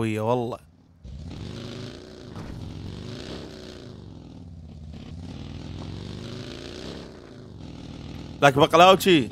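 A buggy engine revs and hums steadily.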